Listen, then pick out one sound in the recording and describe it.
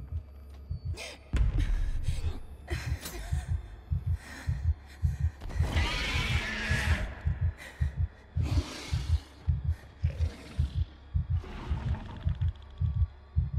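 A monster shrieks and snarls close by.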